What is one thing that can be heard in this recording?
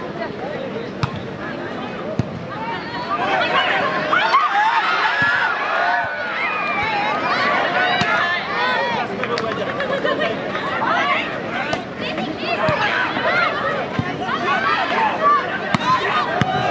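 A volleyball is hit with sharp slaps.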